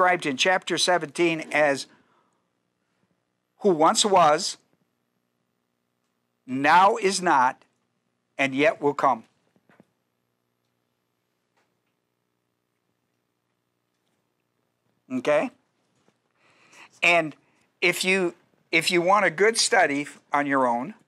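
A middle-aged man speaks calmly into a microphone, pausing often.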